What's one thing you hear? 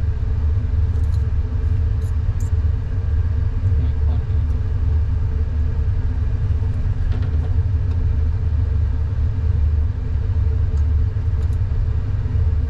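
Metal tweezers tick and scrape softly against a metal tray.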